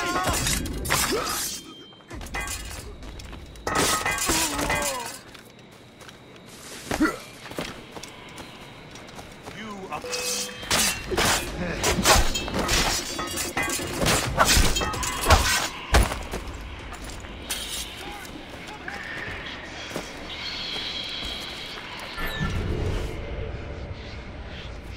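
Footsteps run over grass and stone.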